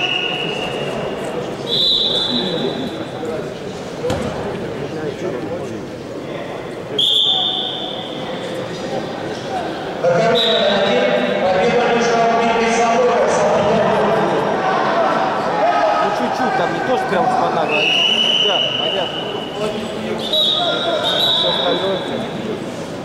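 A referee blows short, sharp whistle blasts.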